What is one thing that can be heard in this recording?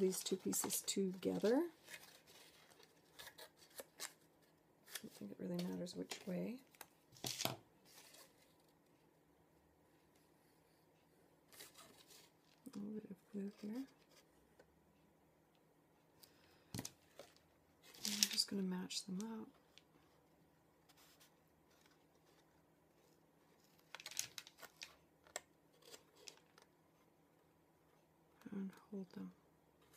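Stiff paper rustles and crinkles in hands.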